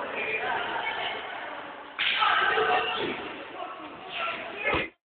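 Young children chatter and shout in an echoing hall.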